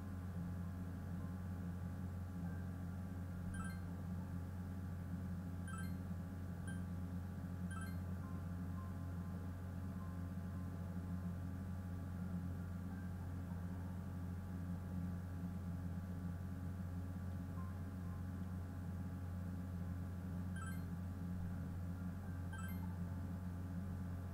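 Calm music plays steadily.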